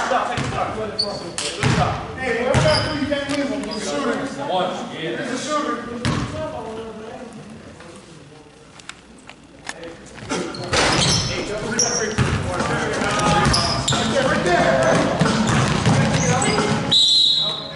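Sneakers squeak sharply on the court floor.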